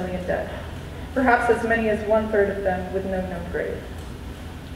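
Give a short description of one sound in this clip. A young person speaks through a loudspeaker in a large echoing hall.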